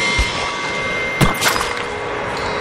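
Blows thud in a close struggle.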